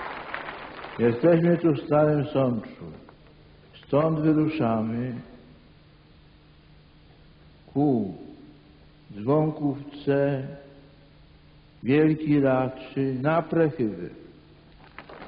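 An elderly man speaks slowly and calmly through a microphone and loudspeakers.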